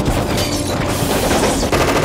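Bullets punch into metal with sharp bangs.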